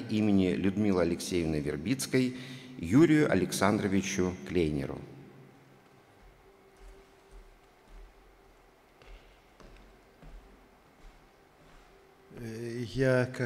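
A man speaks into a microphone through loudspeakers in a large echoing hall.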